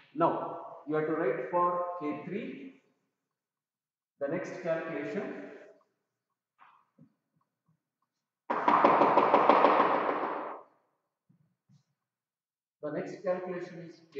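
An elderly man speaks calmly, in short bursts with pauses.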